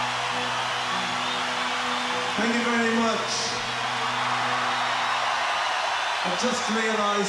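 A huge crowd cheers and roars outdoors.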